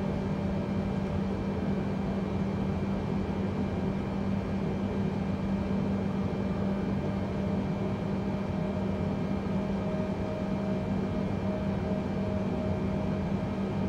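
Turbofan airliner engines hum steadily at low power while taxiing.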